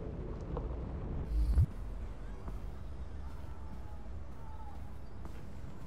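Footsteps tread softly across a floor.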